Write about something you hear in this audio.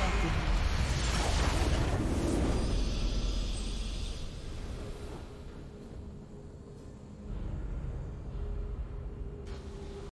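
A triumphant game fanfare swells.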